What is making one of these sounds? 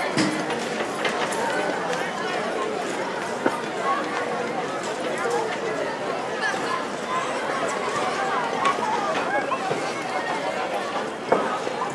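Several men chat quietly among themselves.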